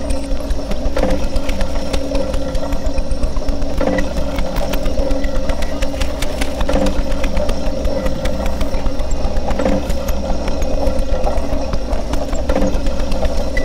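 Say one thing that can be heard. Soft pulsing electronic tones swell every few seconds.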